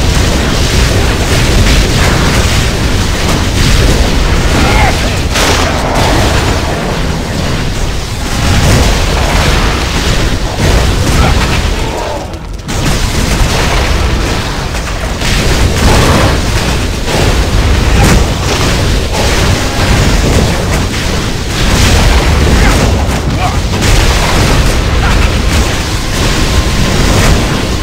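Weapons strike and thud against monsters.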